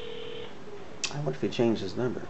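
A man speaks close by into a phone.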